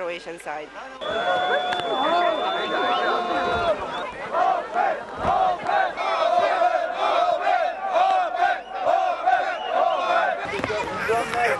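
A crowd of men shouts loudly outdoors.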